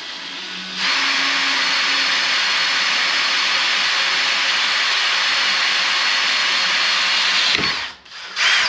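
A power drill whines steadily as it bores into metal.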